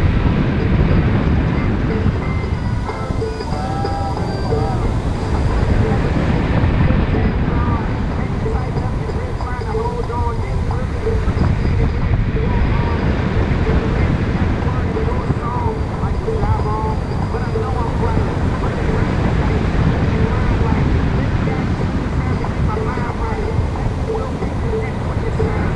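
Wind roars steadily and loudly past, as in open air during flight.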